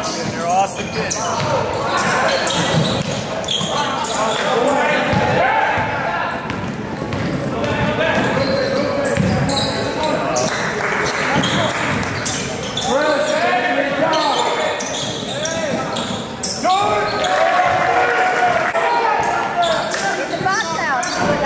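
A basketball bounces and thuds on a hard floor.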